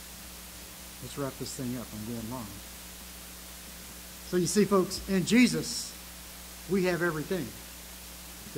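An elderly man speaks slowly and calmly into a microphone, with pauses.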